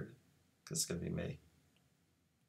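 A man speaks briefly, close to a microphone.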